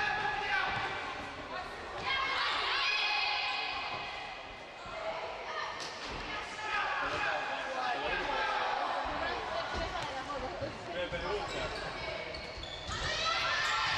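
Young girls shout and call out in a large echoing hall.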